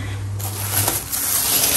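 Plastic shoe covers rustle in a hand.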